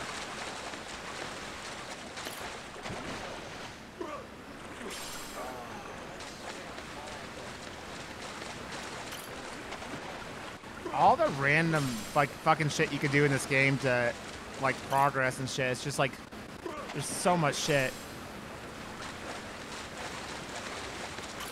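Water splashes steadily as a swimmer paddles.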